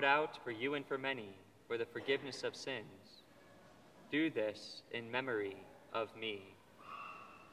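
A man speaks slowly and solemnly through a microphone in a large echoing hall.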